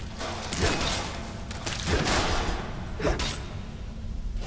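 Flames roar and crackle in fierce bursts.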